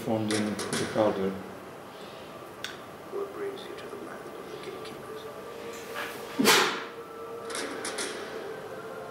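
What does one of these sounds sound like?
A film soundtrack plays through a small loudspeaker.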